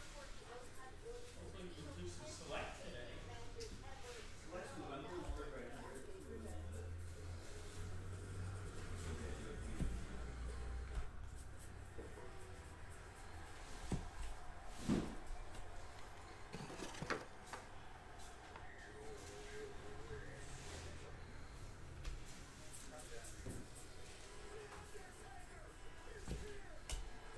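Trading cards flick and shuffle against each other in someone's hands.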